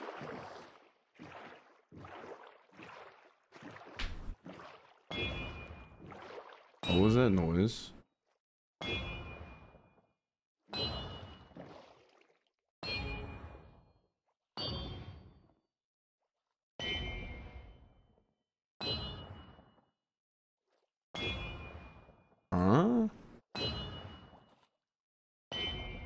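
Paddles splash in water as a small boat rows along.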